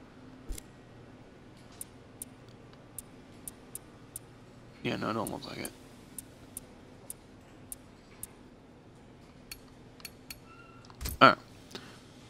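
A game menu ticks with short clicks as selections change.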